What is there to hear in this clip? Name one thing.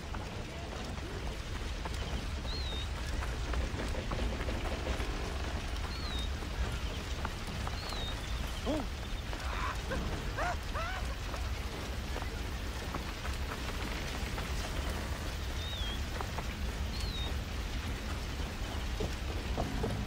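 Footsteps run quickly over dirt and grass.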